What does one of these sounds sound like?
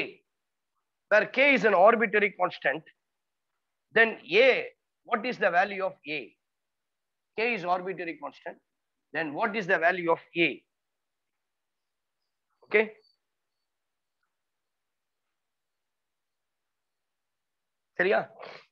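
A man explains calmly, in short bursts with pauses, close by.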